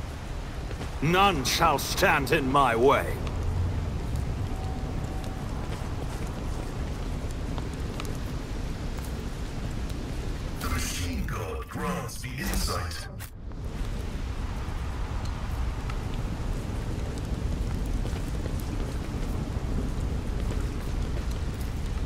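Flames roar and crackle steadily.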